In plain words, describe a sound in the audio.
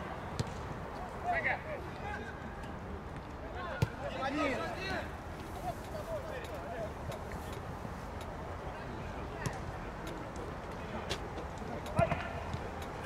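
A football is kicked with sharp thumps.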